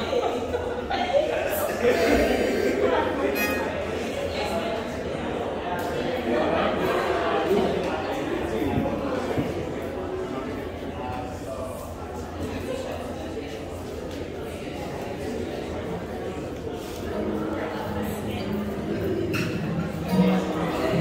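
An acoustic guitar strums steadily through a loudspeaker.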